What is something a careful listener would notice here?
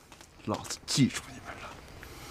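A young man speaks firmly and threateningly.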